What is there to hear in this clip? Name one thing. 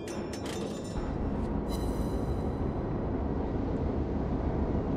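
Water rushes along a ship's hull with a low, steady rumble.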